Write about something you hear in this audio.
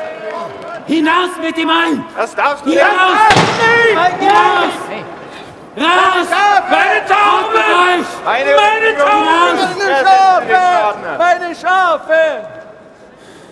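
A crowd of men and women shouts in uproar.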